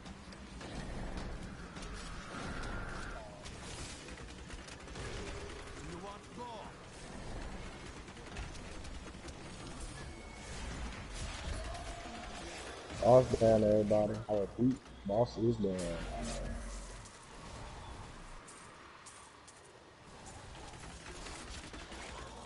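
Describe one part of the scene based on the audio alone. Spell effects and weapon hits clash in a video game battle.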